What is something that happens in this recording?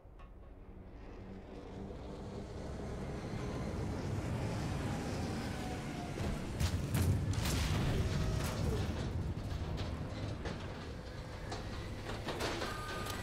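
A low, rumbling roar swells and grows loud.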